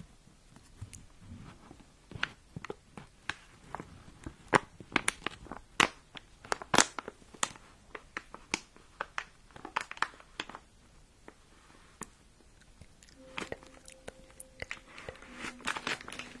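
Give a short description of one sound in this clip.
Fingers tap and scratch on a microphone cover with crisp clicks.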